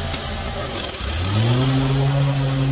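A lawn mower engine starts again and revs up.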